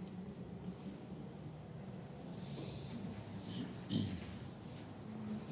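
An accordion plays a tune in an echoing hall.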